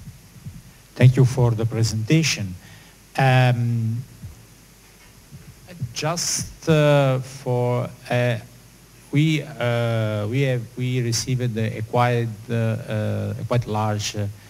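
A man speaks calmly into a microphone over a loudspeaker, in an echoing hall.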